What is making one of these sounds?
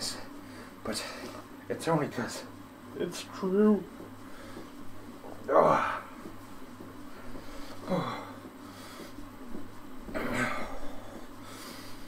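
A man talks close to a microphone, in a casual and breathy way.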